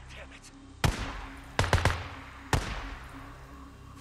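Gunshots crack and echo through the woods.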